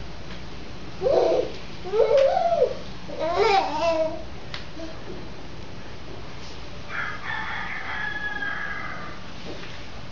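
A toddler babbles.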